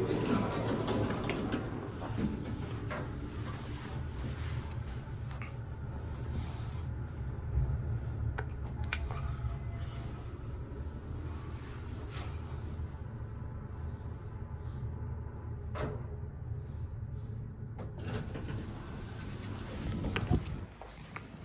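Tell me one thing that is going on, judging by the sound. A lift hums low and steady as it moves.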